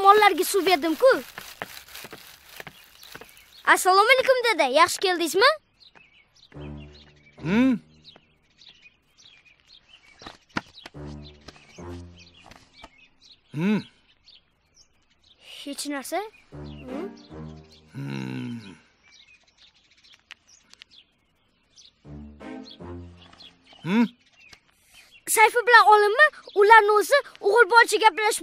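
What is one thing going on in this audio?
A young boy talks with animation, close by.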